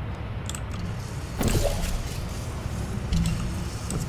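A game's portal gun fires with a sharp electronic zap.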